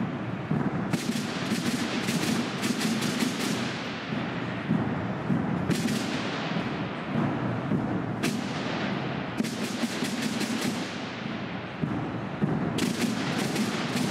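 Cymbals crash in a band.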